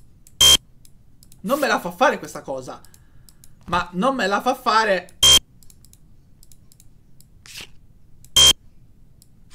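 A short electronic buzzer tone sounds several times.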